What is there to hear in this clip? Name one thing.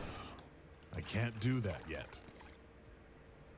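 A man speaks calmly, close to a microphone.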